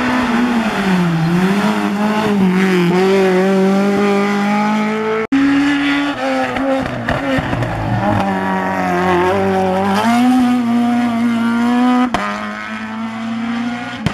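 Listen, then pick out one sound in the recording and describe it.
A rally car engine revs hard and roars past, rising and falling in pitch as gears change.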